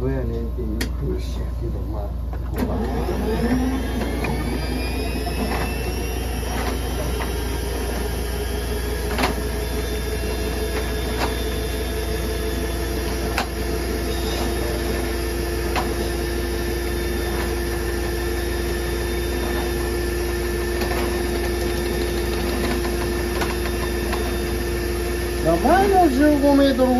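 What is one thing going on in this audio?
A spinning cable knocks and rattles against a metal drain.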